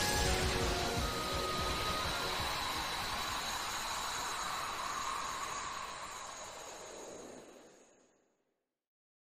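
A loud whooshing rush of game effects sweeps and then fades away.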